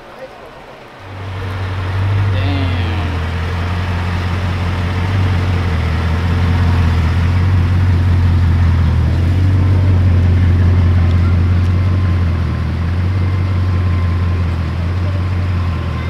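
A sports car engine idles with a deep, steady rumble close by.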